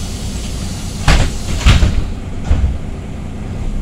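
A bus rattles and thumps over bumps in the road.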